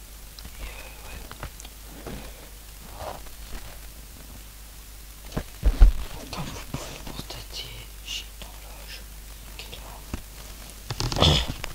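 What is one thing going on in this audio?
A young man speaks quietly and sleepily close by.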